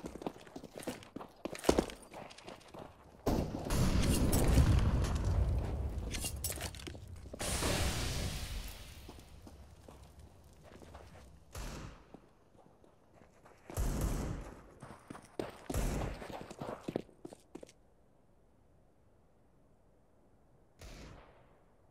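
Footsteps run quickly across hard ground.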